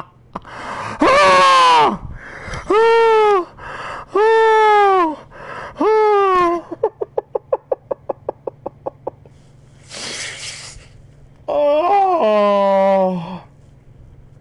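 A man wails and howls in long, drawn-out cries close to a microphone.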